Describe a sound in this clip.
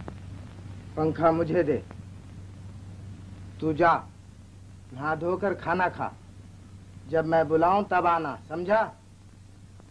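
A young man speaks calmly and close by, in short phrases.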